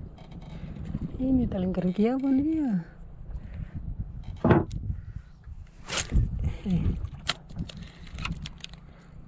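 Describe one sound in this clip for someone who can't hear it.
A fishing reel whirs and clicks as its handle is turned.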